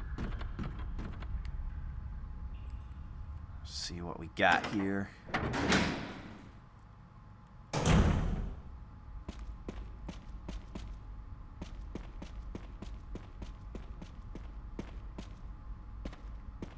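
Footsteps tread on a hard stone floor.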